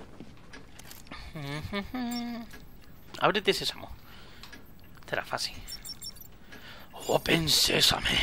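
An electronic device chirps and beeps as it tunes.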